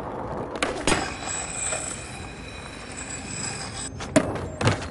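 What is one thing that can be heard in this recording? A skateboard grinds with a steady metallic scrape along a rail.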